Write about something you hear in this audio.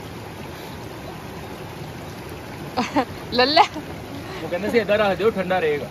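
A stream trickles gently over stones outdoors.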